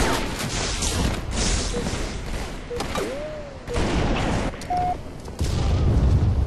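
Gunfire and explosions rumble and crackle in a video game battle.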